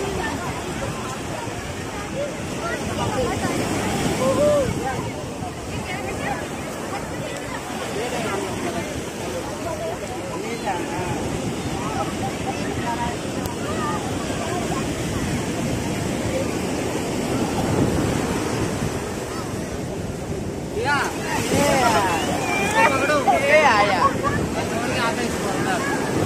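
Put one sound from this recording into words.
Shallow waves wash and swirl over wet sand.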